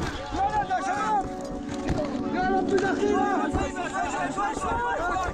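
Hands scrape and shift loose chunks of rubble.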